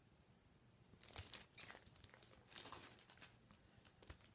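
Paper and cardboard rustle and slide as a record sleeve is handled.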